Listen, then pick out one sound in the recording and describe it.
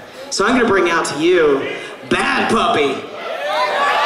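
A man speaks loudly with animation through a microphone in a large echoing hall.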